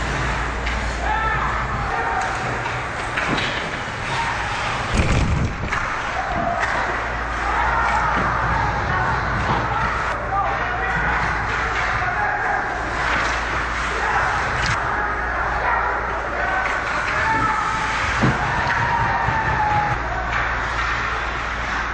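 Young players shout to each other in a large echoing rink.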